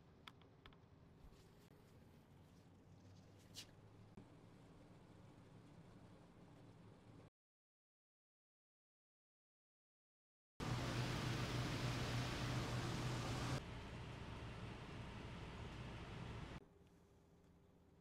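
An air conditioner hums and blows air steadily.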